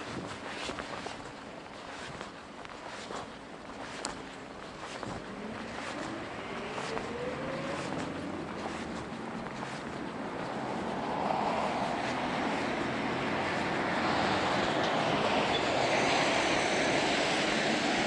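Bicycle tyres roll over smooth pavement.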